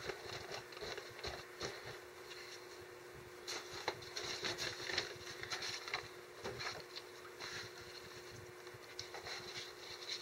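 Newspaper rustles and crinkles as it is handled.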